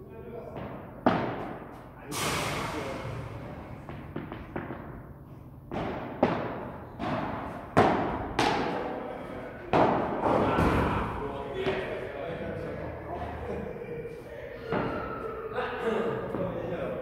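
Padel rackets strike a ball with sharp pops, echoing in a large indoor hall.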